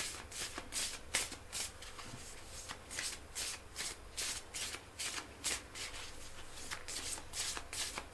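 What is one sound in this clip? Cards rustle and slide against each other in a man's hands.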